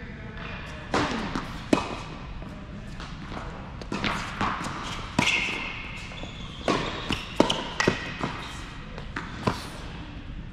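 Tennis balls pop off rackets in a large echoing hall.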